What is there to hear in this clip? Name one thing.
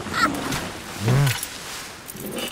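An elderly man grunts low close by.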